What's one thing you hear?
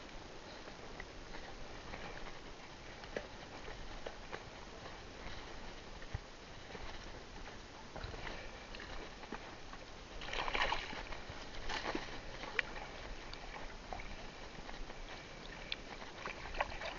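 Water splashes as a fishing net is hauled in.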